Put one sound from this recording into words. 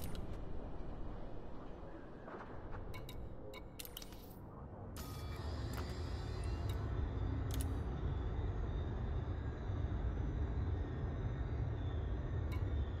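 Short electronic clicks and beeps sound as menu options are picked.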